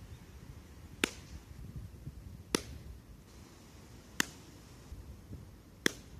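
A ball smacks sharply into a glove at a steady pace.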